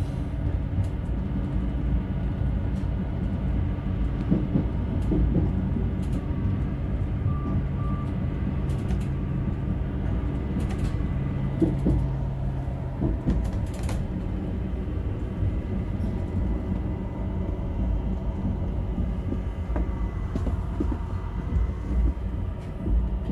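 A train's motor hums steadily as it rolls along the track.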